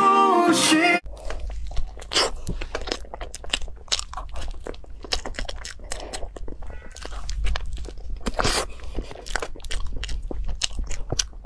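A young woman eats soft creamy food close to a microphone, with wet smacking and chewing sounds.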